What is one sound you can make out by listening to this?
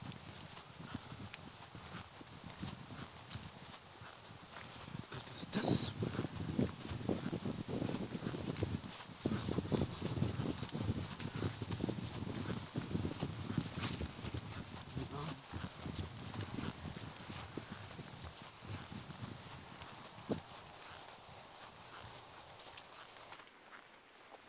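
Footsteps crunch on a leafy dirt path.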